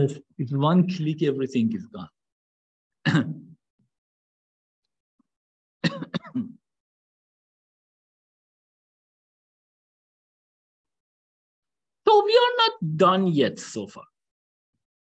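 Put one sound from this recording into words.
A young man speaks calmly into a microphone in short bursts with pauses.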